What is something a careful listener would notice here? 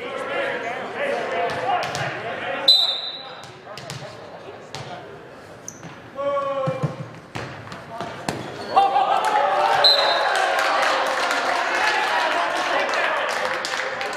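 Young men shout and cheer in a large echoing gym.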